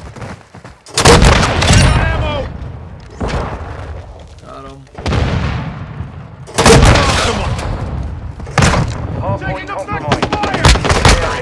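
Rifle shots fire in loud, sudden bursts.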